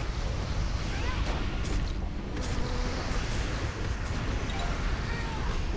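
Magic spell effects whoosh and chime.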